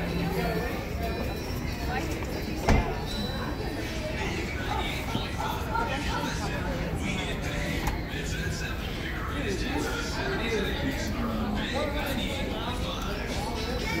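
Several adults talk casually nearby, outdoors.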